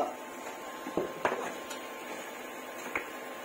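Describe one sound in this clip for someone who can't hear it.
A spoon scrapes and knocks against a pan.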